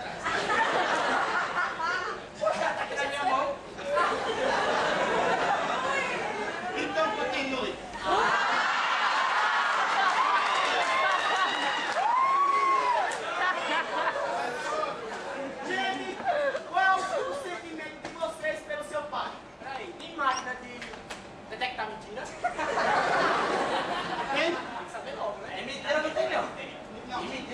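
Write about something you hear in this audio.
Young men speak loudly and with animation in a large echoing room.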